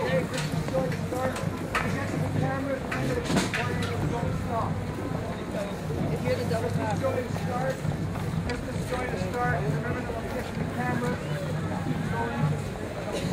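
Drums beat as a marching band passes.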